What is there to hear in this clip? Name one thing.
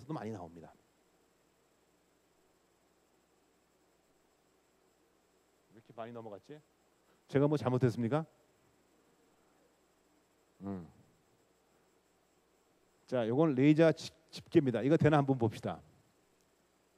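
An elderly man speaks into a microphone in short bursts, heard through loudspeakers.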